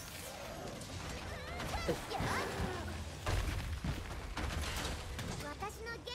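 Explosions burst and rumble.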